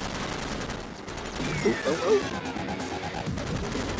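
Vehicles crash and clang together.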